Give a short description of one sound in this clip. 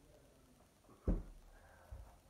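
Bare feet thump onto a wooden floor.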